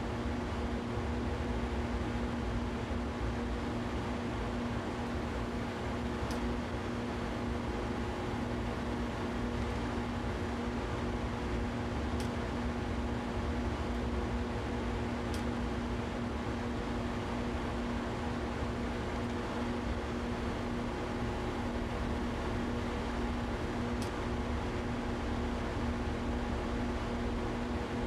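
An electric train's motor hums steadily from inside the cab.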